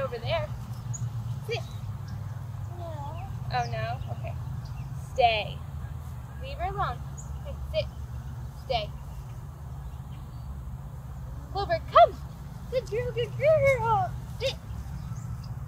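A young woman talks cheerfully to a dog nearby.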